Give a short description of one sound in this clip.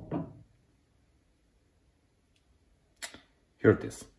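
A heavy metal part clinks as it is set down on wood.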